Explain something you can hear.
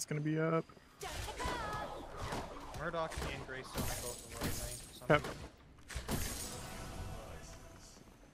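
Game combat effects clash and whoosh.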